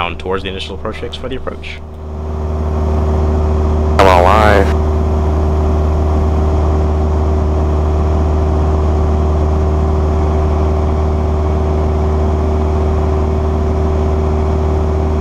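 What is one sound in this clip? A small plane's engine drones steadily, loud and close.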